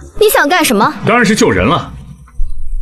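A young man answers calmly, close by.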